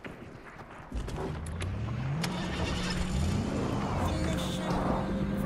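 A car engine revs as the car drives off.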